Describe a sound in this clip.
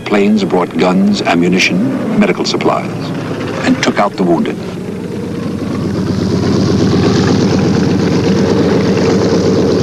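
An airplane engine drones as a plane flies past.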